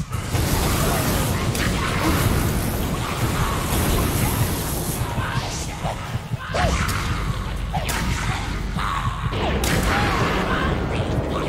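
Magic blasts crackle and whoosh.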